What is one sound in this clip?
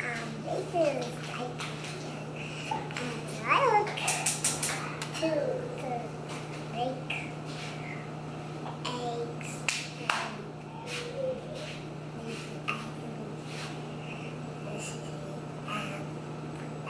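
A young child claps her hands.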